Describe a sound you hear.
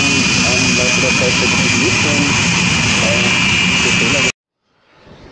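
A jet engine roars loudly as a jet races past.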